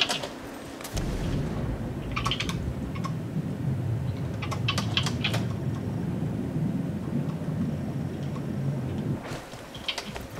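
Water bubbles and churns underwater with a low muffled rumble.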